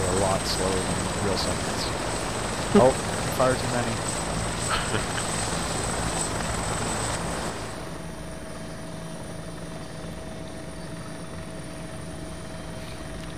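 A helicopter's rotor whirs steadily nearby, then turns quieter and muffled.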